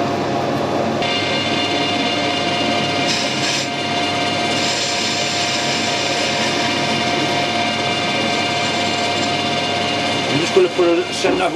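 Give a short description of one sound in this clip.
A cutting tool shaves spinning metal with a steady high hiss.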